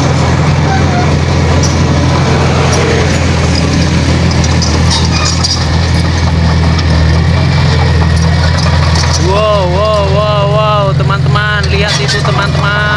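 A bulldozer's diesel engine rumbles steadily close by.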